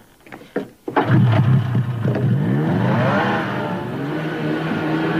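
A snowmobile engine starts and revs loudly.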